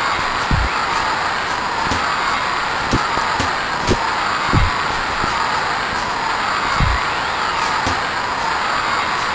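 A crowd cheers steadily in the background.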